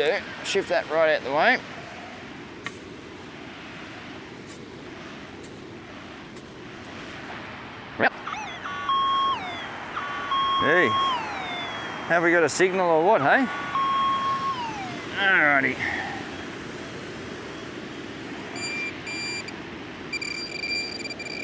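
A metal detector beeps and warbles in rising and falling tones.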